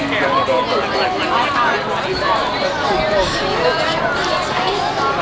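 A crowd of men, women and children chatter all around outdoors.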